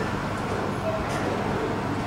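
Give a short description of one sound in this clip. Cutlery clinks on a plate.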